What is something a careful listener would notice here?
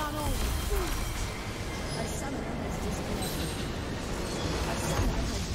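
Magic spells crackle and blast in a fight.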